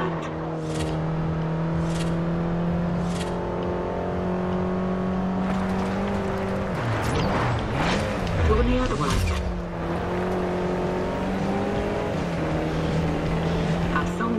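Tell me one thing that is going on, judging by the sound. A car engine roars at high speed.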